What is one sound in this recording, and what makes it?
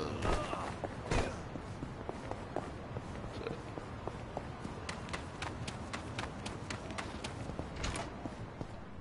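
Footsteps run quickly along a street.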